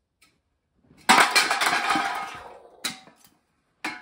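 Metal cans tumble and clatter onto a wooden table.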